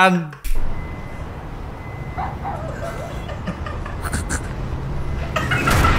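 A young man talks and laughs into a microphone.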